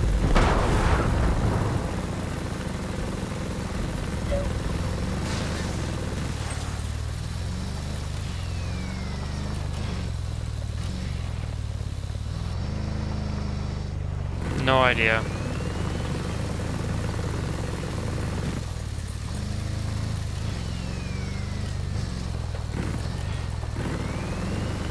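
A vehicle engine rumbles steadily while driving over rough ground.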